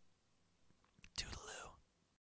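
A young man speaks a short breathy phrase into a close microphone.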